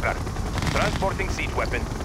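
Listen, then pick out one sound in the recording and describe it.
Energy weapons zap and crackle in a battle.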